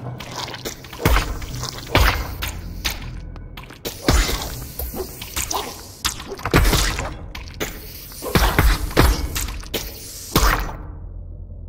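A sword swishes and strikes in quick, sharp blows.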